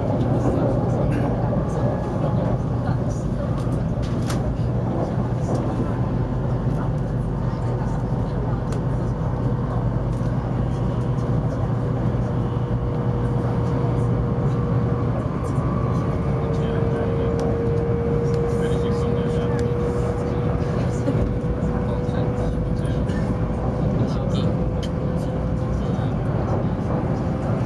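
A fast train rumbles steadily along the track, heard from inside the carriage.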